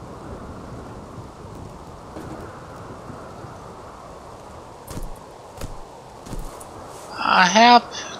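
Guns fire in short single shots.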